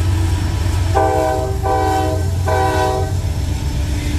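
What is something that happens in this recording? A train horn sounds three short blasts.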